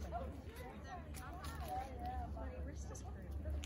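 Two women talk faintly in the distance outdoors.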